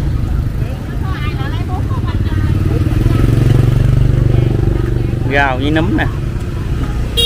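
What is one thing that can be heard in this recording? Middle-aged women talk calmly nearby.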